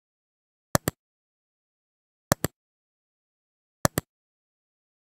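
A computer mouse clicks several times.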